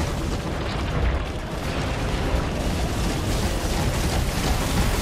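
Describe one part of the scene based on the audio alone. A huge creature rumbles with a deep, steady roar.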